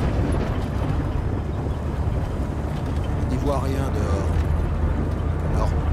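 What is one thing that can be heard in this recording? Rain patters on a windshield.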